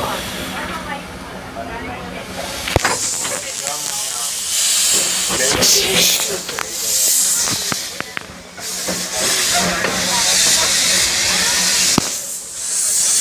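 Steam hisses from a locomotive.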